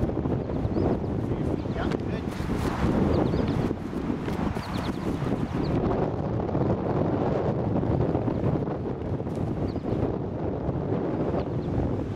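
A football thumps against gloved hands and the grass.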